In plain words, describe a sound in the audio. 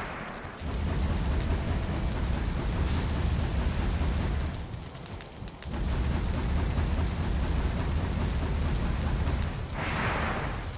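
A fire roars with a low rumble.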